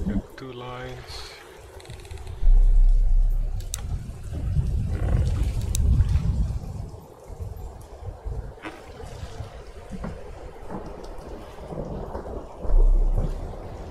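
Rain patters on open water.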